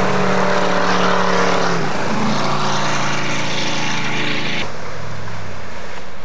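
Water sprays and hisses behind a speeding boat.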